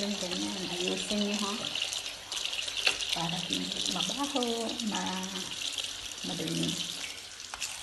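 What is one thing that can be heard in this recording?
A sponge scrubs against a basin.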